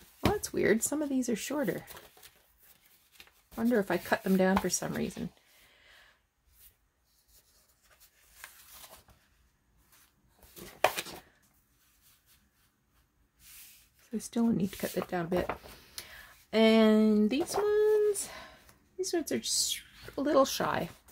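Sheets of paper rustle and slide against each other as they are handled.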